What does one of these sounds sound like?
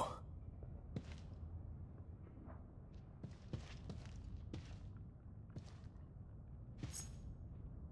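Slow footsteps thud softly on a floor.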